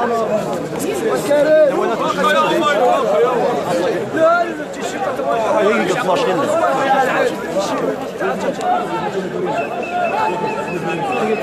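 A crowd of men chants and shouts together.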